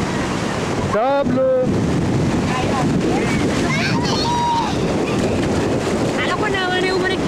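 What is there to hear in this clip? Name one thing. A young girl calls out playfully close by.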